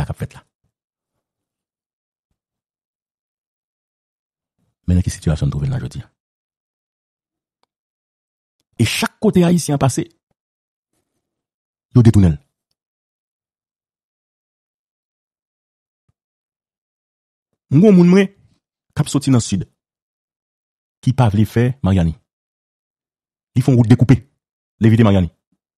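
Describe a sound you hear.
A man speaks with animation, close to a microphone, in short bursts.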